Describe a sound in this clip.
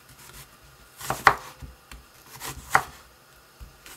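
A knife chops through an onion onto a wooden board.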